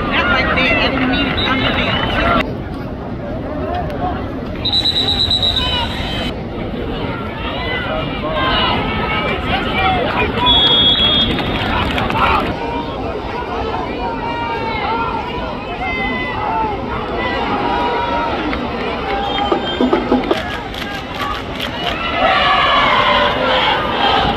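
A large crowd cheers and shouts in a big open stadium.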